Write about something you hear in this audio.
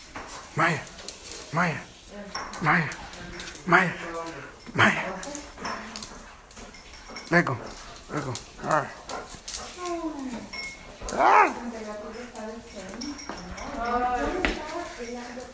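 A dog barks repeatedly close by.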